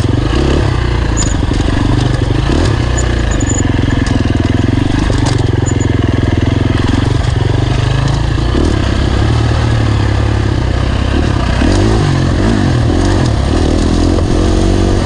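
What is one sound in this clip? Stones and gravel crunch and rattle under tyres.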